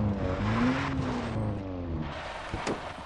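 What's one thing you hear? A vehicle engine hums at idle and winds down.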